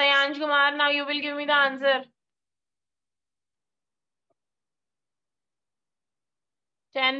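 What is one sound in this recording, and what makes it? A young child speaks in a high voice through an online call.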